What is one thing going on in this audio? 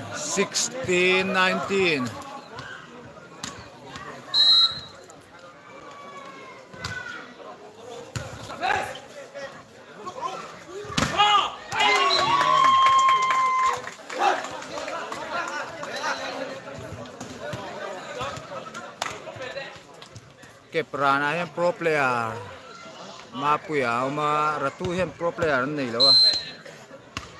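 Young men shout loudly nearby.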